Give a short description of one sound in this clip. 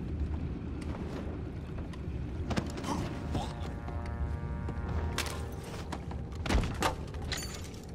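Bodies scuffle and thud in a struggle.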